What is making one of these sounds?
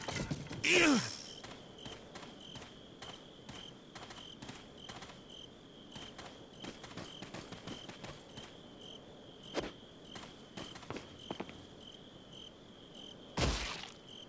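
Footsteps tread steadily on a hard stone floor.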